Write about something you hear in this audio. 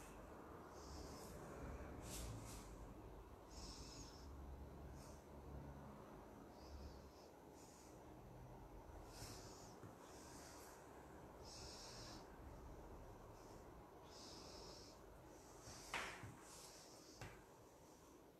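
A small blade scrapes and cuts softly against a plastic mat.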